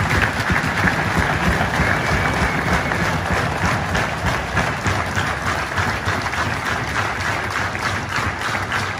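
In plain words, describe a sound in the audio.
A crowd claps steadily in a large echoing hall.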